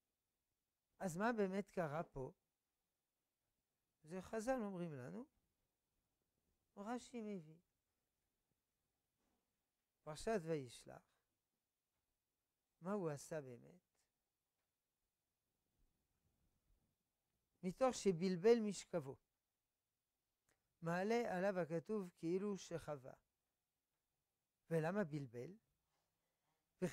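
An elderly man reads out through a clip-on microphone, in short phrases with pauses.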